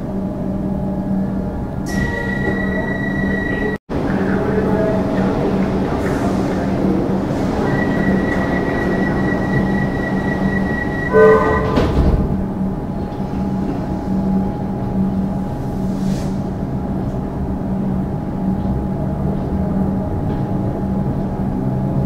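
A train hums steadily from inside a carriage.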